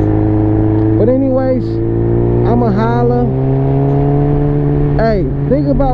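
A motorcycle engine revs up and down as the rider shifts gears.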